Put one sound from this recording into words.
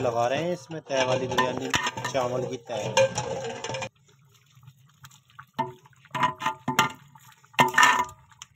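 A metal ladle scrapes and knocks against a metal pot.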